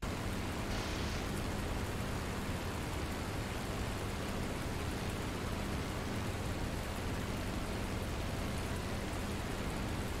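Wind rushes loudly past an aircraft cockpit.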